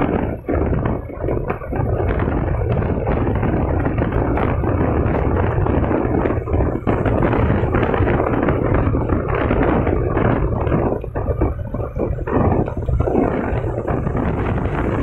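Wind rushes loudly past the rider.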